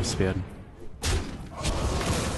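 A sharp magical impact bursts as two game creatures clash.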